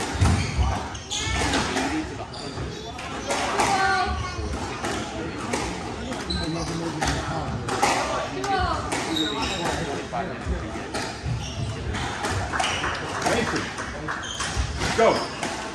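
A squash ball smacks sharply off the walls in a rally.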